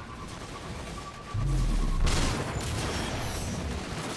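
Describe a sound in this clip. Laser shots zap and crackle nearby.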